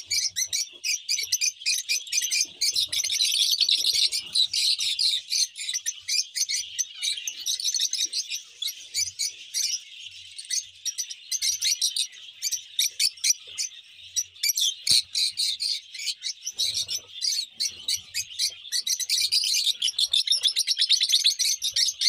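Small parrots flutter their wings.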